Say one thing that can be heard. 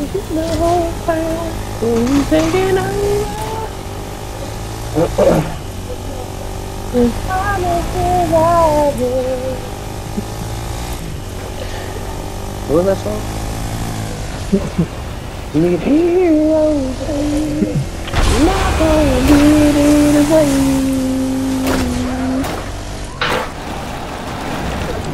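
A quad bike engine hums steadily as it drives over rough ground.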